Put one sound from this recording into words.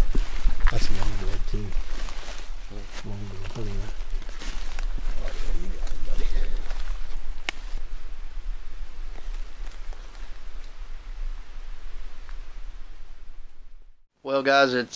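Dry leaves rustle and crunch underfoot outdoors.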